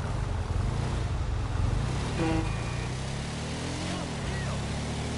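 A buggy engine drones and revs steadily.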